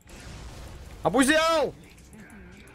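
A young man shouts out loudly into a microphone.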